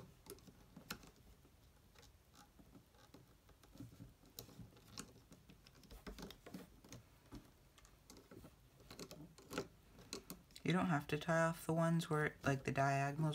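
A small plastic hook clicks and taps softly against stretched rubber bands.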